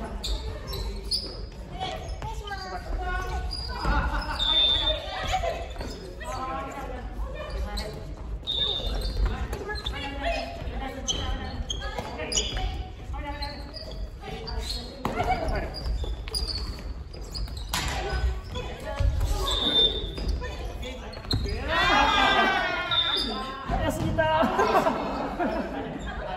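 Young men and women talk and call out to each other during play.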